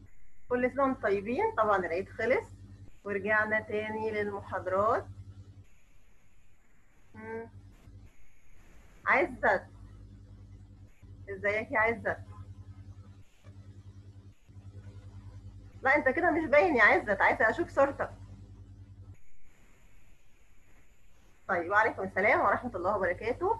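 A young girl speaks softly over an online call.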